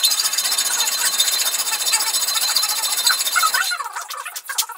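A man files metal with a hand file.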